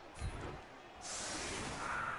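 A loud magical whoosh bursts out and hisses on.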